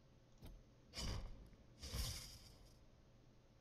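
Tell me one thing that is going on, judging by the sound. A magical impact effect whooshes and bursts as one creature strikes another.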